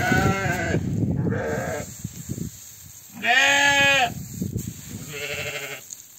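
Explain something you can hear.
A hand stirs and rustles dry grain in a metal bucket.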